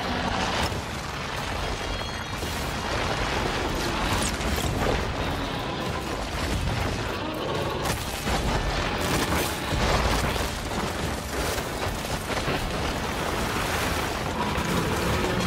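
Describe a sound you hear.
Energy blasts crackle and zap in quick bursts.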